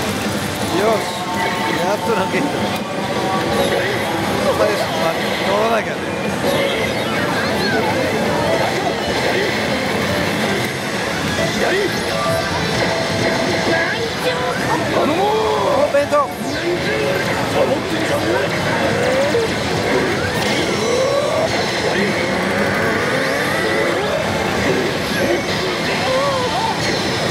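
Recorded character voices shout from a slot machine's speaker.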